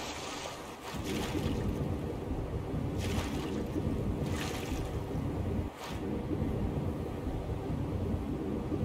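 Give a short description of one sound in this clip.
A low, muffled rumble of water fills the ears underwater.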